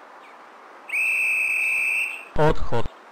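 A warning tone beeps in a train cab.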